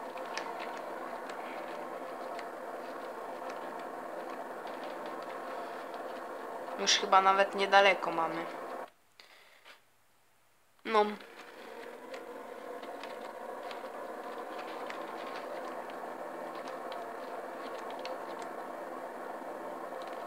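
A tractor engine drones steadily at an even pitch.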